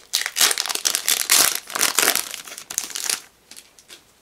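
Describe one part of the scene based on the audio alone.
A foil booster pack crinkles and tears open.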